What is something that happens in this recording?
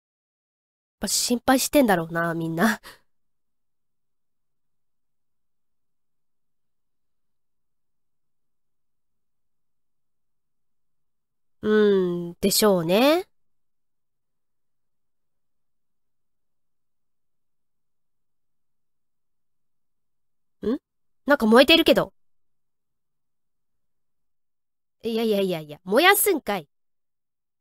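A young woman speaks briefly and animatedly into a microphone, in short bursts with long silences between.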